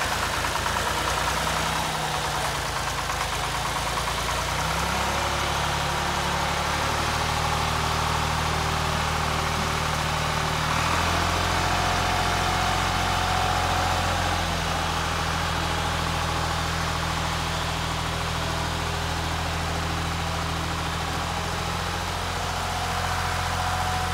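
A tractor engine chugs steadily nearby, its pitch shifting as it drives off and turns back.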